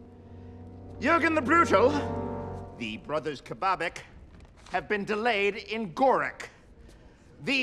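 A man speaks loudly and dramatically.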